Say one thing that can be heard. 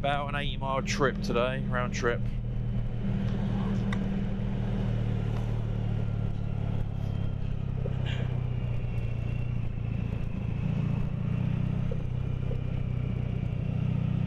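A motorcycle engine hums steadily at low revs.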